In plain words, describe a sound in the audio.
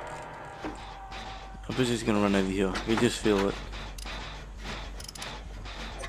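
A generator's parts clank and rattle as they are worked on.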